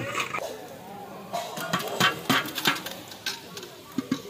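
Liquid pours and splashes into a large pot.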